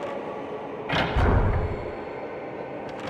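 A wooden door slides open with a loud rumble.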